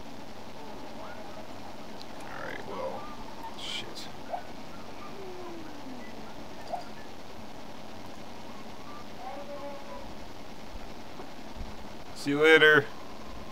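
A video game plays soft chirps and blips through a television speaker.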